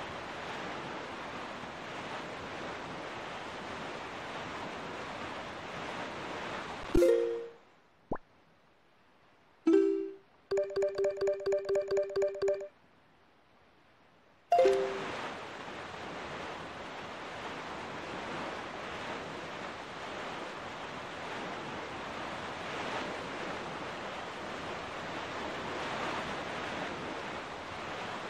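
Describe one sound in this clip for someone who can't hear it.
Water rushes and splashes steadily under a sailing boat.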